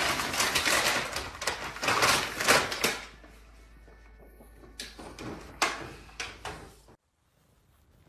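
A plastic tub scrapes and clatters across a wooden floor.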